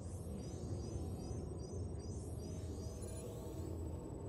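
An electronic scanner sweeps with rising and falling warbling tones.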